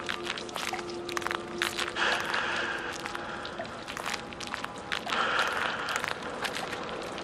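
Burning logs crackle and pop in a fire.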